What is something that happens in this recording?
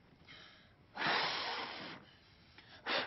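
A teenage boy blows out candles with a long puff of breath.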